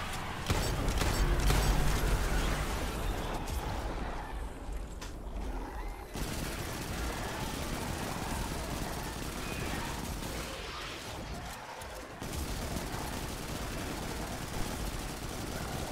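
Guns fire in rapid bursts with electronic effects.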